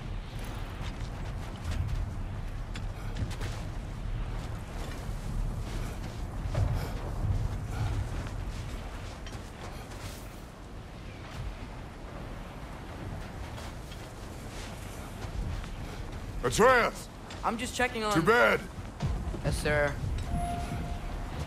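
Footsteps crunch through snow at a run.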